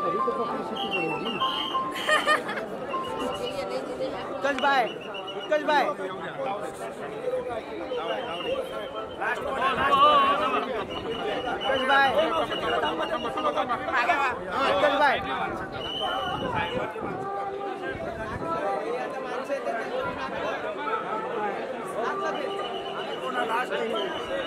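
A dense crowd of men chatters and shouts loudly close by, outdoors.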